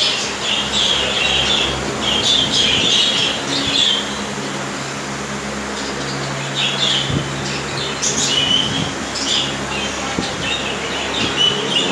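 Many small birds chirp and chatter busily nearby.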